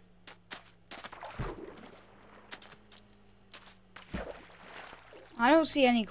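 Water splashes as someone wades and swims.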